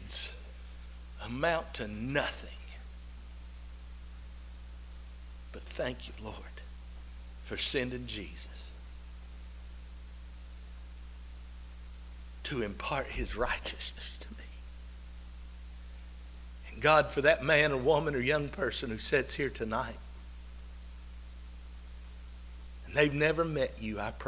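A man speaks emotionally through a microphone, pausing often.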